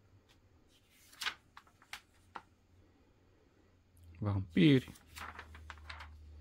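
Paper pages rustle as they are turned and smoothed by hand.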